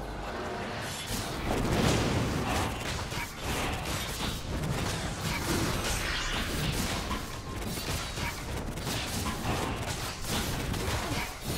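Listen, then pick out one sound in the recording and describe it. Fantasy battle sound effects clash, crackle and whoosh.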